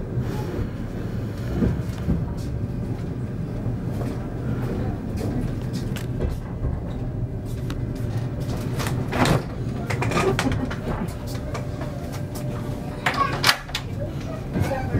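An electric train rumbles along the rails as it pulls away, heard from inside a carriage.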